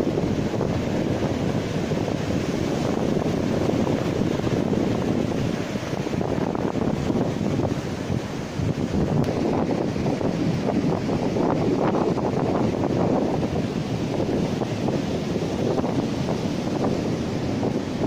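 Waves break and wash up on a shore.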